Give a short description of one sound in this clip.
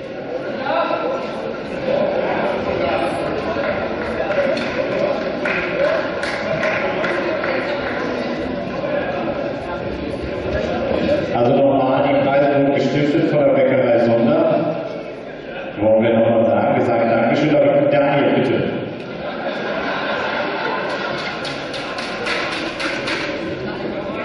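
Several young men talk and call out to each other in a large echoing hall.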